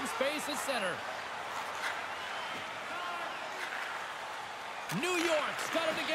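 Skates scrape across ice.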